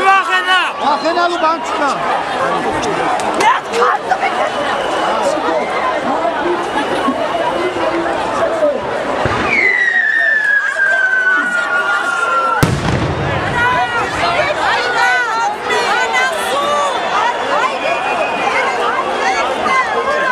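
A crowd of young men shouts and chatters loudly outdoors, close by.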